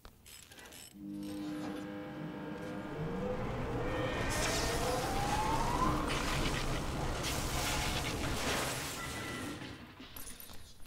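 A machine hums loudly and rises in pitch as it powers up.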